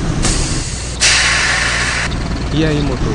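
Bus doors open with a loud air hiss.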